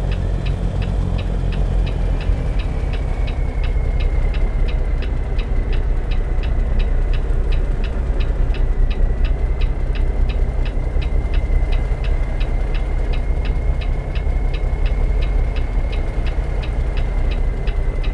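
A truck's diesel engine idles with a deep rumble.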